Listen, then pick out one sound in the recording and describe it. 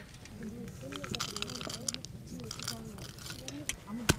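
Almonds clatter into a stone mortar.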